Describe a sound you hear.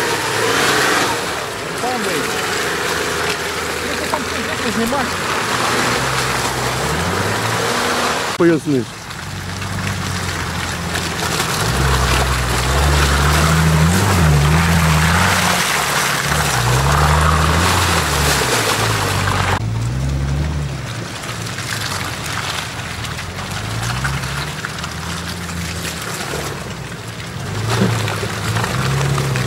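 Tyres splash and squelch through deep mud.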